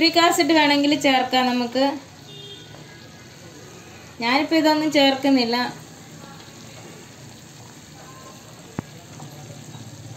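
Thick liquid bubbles and simmers in a pan.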